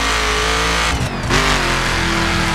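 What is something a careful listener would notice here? A car engine briefly drops in pitch as it shifts gear, then climbs again.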